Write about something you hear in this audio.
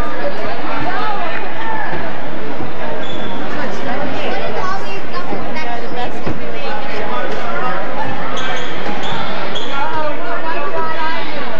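A crowd of spectators chatters throughout a large echoing gym.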